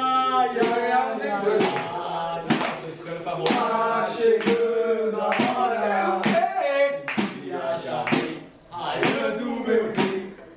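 A group of young men sing loudly together.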